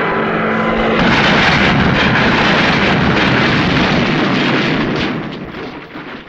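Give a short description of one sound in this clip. A plane crashes with a long, loud roaring crash.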